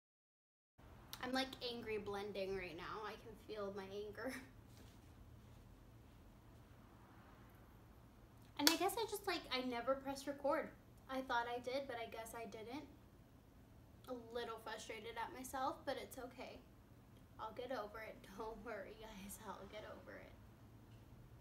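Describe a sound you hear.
A young woman talks calmly and closely into a microphone, in short bursts with pauses.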